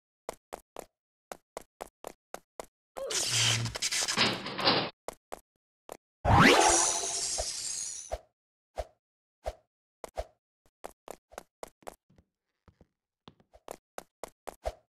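Footsteps patter quickly and evenly as a game character runs.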